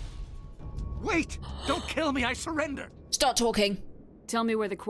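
A man's voice speaks pleadingly in game audio.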